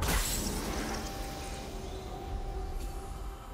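Video game sound effects of a fight clash and crackle, then fade.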